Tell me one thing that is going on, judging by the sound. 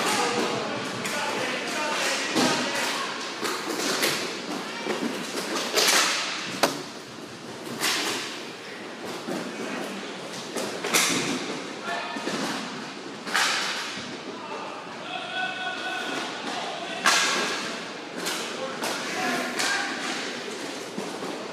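Hockey sticks clack against a ball and the floor.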